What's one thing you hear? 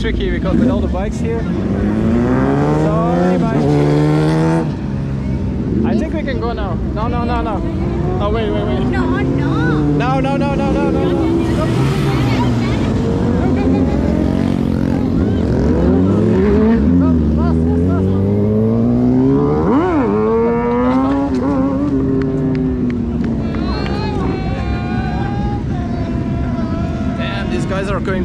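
Motorcycle engines rev up and down.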